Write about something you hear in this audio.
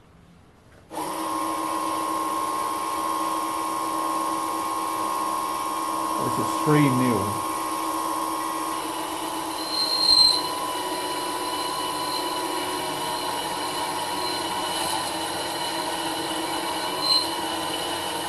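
A small electric motor starts up and whirs steadily with a high whine.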